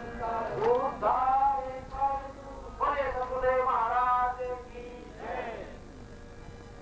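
A man chants in a sung, drawn-out voice nearby.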